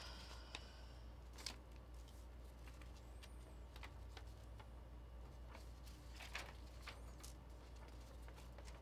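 Playing cards and paper rustle and tap against a table up close.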